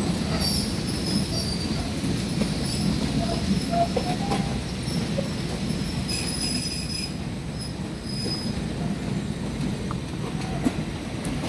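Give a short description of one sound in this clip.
A train rumbles along the tracks, slowly moving away.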